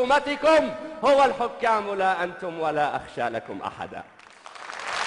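A man recites expressively through a microphone, his voice ringing in a large hall.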